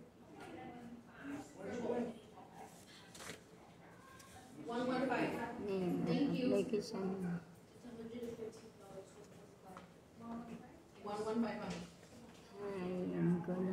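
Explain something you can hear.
A woman speaks quietly and slowly close by.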